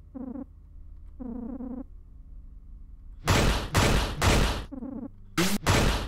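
Rapid electronic blips chirp in short bursts.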